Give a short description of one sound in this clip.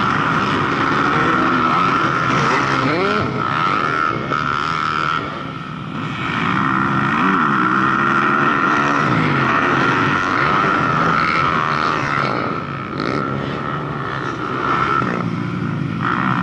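Dirt bike engines rev and whine loudly as riders fly past close by.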